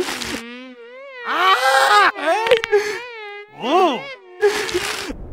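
A young man speaks with excitement in a high, animated voice.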